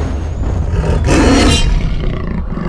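A sharp slashing whoosh sweeps past.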